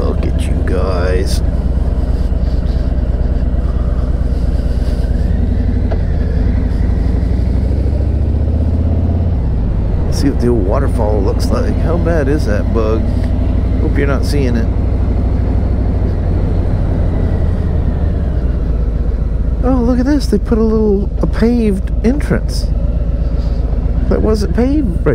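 A man talks calmly through a helmet microphone.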